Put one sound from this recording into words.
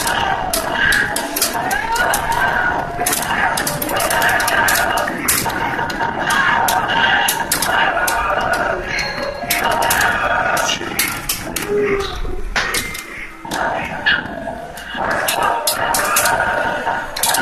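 Punches and kicks land with sharp smacks from a fighting game played through a loudspeaker.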